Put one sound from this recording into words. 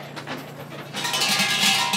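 A shrine bell rattles loudly as its rope is shaken.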